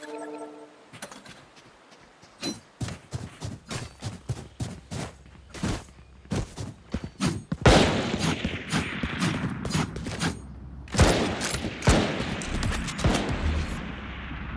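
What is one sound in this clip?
Quick footsteps tap on a hard stone floor.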